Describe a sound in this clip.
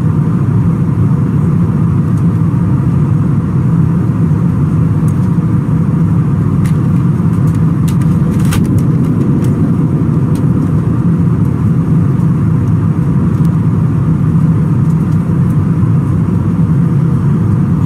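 An aircraft cabin hums with a steady low engine drone.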